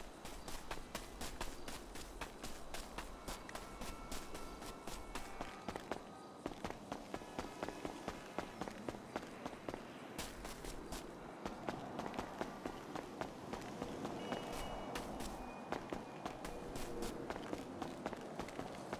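Quick footsteps patter as a man runs on grass and pavement.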